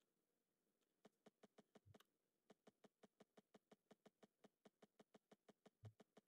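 Soft interface clicks tick rapidly and evenly.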